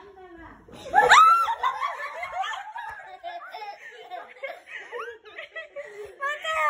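A young boy laughs and giggles close by.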